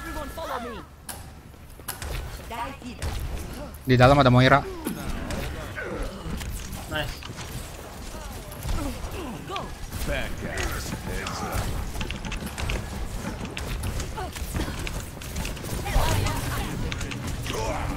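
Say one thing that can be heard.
Game gunfire and energy blasts crackle and thump.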